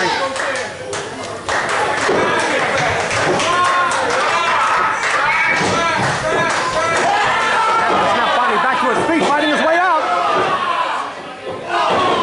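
A crowd of men and women shouts and cheers loudly nearby.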